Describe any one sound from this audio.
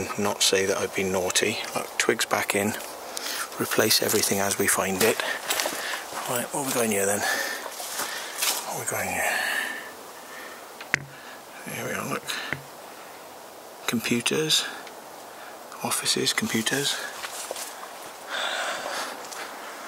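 A man speaks quietly and close by, in short bursts with pauses.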